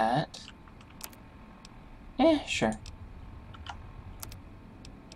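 Soft electronic menu clicks and beeps sound now and then.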